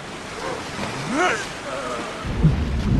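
A man screams in pain.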